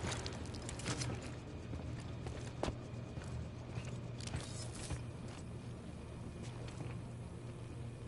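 Footsteps crunch on a gritty floor.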